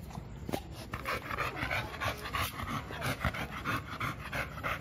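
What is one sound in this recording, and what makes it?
A dog pants heavily close by.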